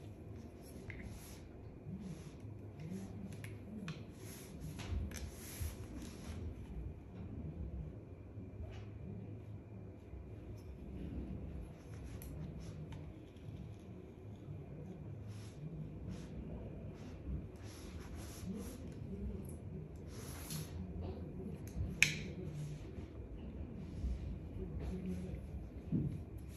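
A comb rustles through hair in quick strokes.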